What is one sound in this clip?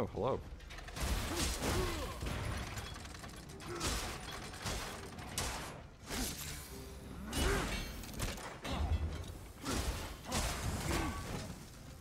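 Weapons clash and magic blasts crackle in a fight.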